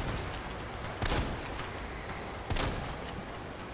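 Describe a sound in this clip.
A pistol fires two loud shots that echo.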